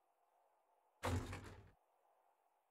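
A wooden crate lid thuds shut.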